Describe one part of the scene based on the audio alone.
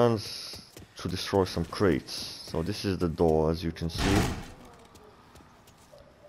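Footsteps run over stone pavement.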